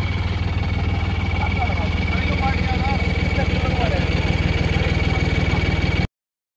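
A tractor's diesel engine idles with a steady, rapid chugging throb.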